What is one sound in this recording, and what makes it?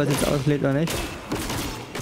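A blade strikes with a heavy thud.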